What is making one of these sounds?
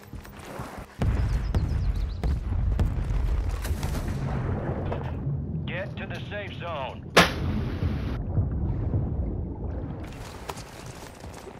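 A deep explosion booms and rumbles on, slowly fading.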